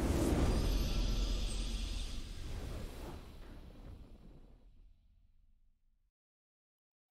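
A triumphant fanfare plays loudly and slowly fades away.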